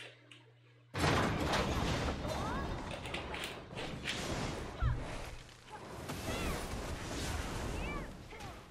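A fiery spell roars and crackles.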